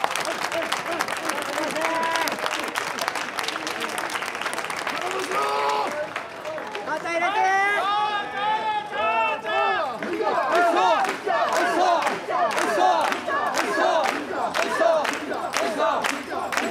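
A crowd of men chant rhythmically together, shouting loudly.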